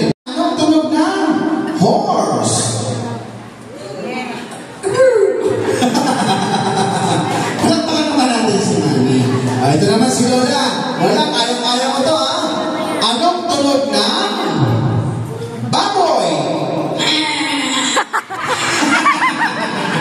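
A man talks animatedly through a microphone and loudspeaker in an echoing hall.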